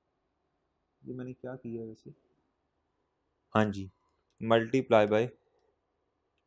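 A young man speaks briefly and calmly through a microphone.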